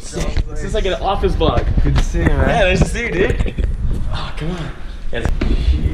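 Young men talk loudly and cheerfully close by.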